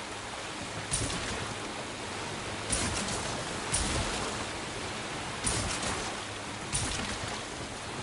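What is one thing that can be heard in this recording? Waves slap hard against a boat's hull.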